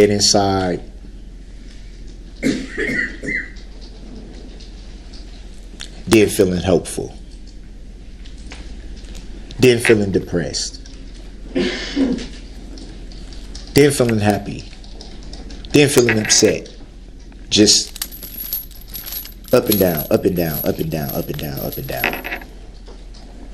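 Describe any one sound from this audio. A man speaks in short, emphatic bursts, with pauses between them.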